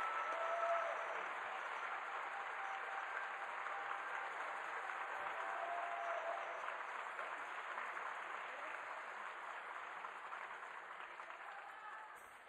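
A school band plays in a large hall and slowly fades.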